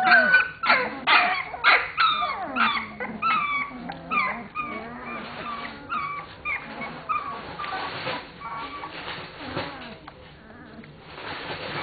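Newborn puppies whimper and squeal in high, wavering cries close by.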